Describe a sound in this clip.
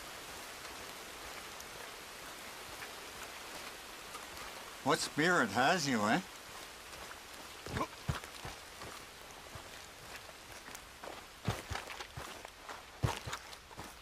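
Footsteps crunch on dirt and grass.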